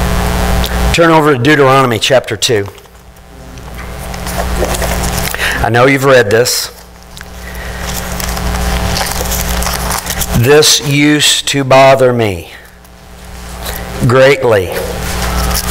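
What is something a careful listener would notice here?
A middle-aged man speaks calmly in short phrases, with pauses between them.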